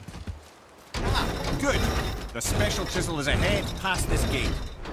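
A large wooden wheel creaks and rattles as it is cranked.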